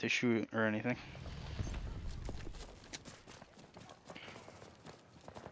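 Footsteps rustle through grass at a run.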